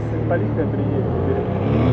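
A motorcycle engine runs close by.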